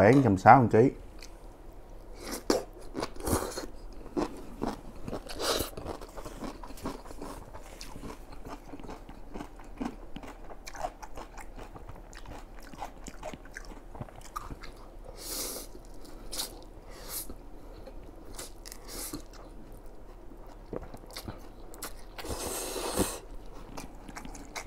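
A young man chews food with wet smacking sounds, close to a microphone.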